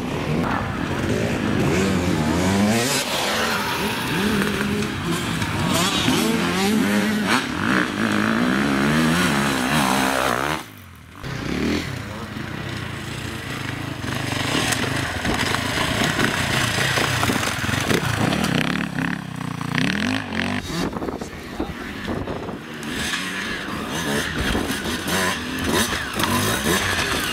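A dirt bike engine revs hard and sputters close by.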